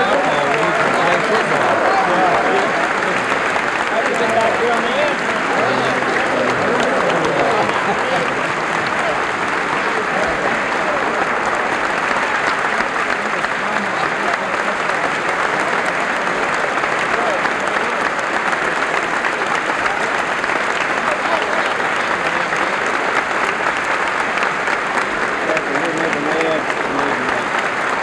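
A crowd of men and women cheers and murmurs.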